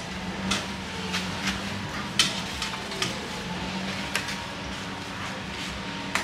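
Utensils clink against plates.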